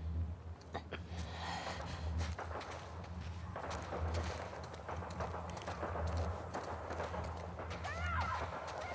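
Footsteps tread softly on a hard floor.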